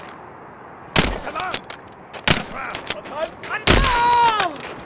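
Pistol shots crack loudly.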